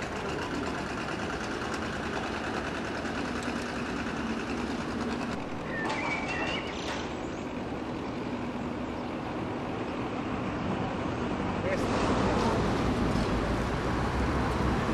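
Water laps gently against boat hulls.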